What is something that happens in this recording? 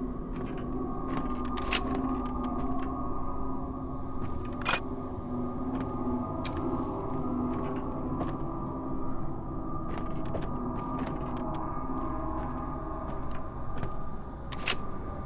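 Footsteps tap slowly across wooden floorboards.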